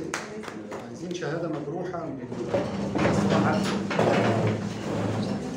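A middle-aged man speaks animatedly nearby.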